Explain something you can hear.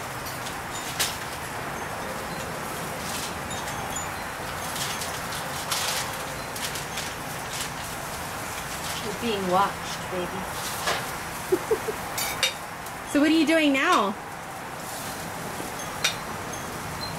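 Utensils clink and tap against a grill.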